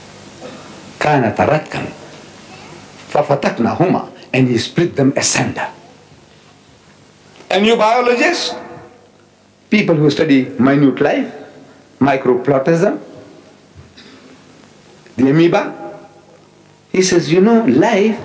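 A man speaks with animation through a microphone, echoing in a large hall.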